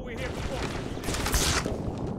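An energy blast crackles and bursts close by.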